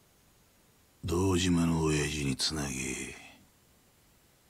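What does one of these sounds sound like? A middle-aged man speaks firmly and gruffly, close by.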